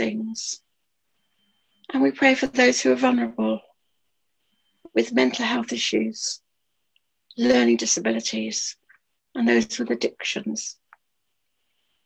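An elderly woman speaks with animation over an online call.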